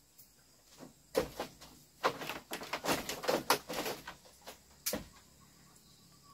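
Bare feet thump softly on a creaking bamboo floor.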